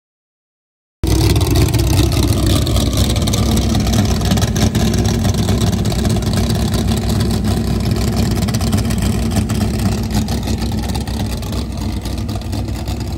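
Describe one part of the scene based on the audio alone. An engine idles close by with a steady, rough rumble.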